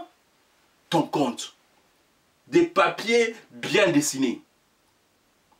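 A man speaks forcefully and with emphasis, close to a microphone, in short bursts.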